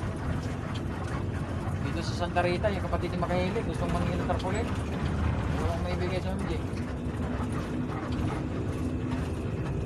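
A vehicle engine rumbles steadily while driving along a road.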